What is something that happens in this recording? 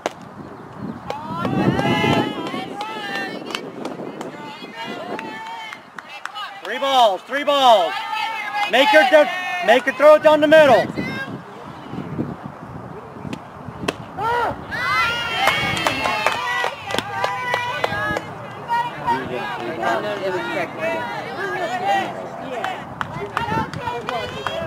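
Young people shout and cheer loudly nearby and across an open field.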